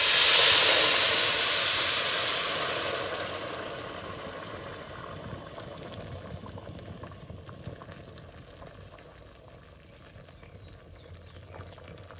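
Wood crackles in a fire.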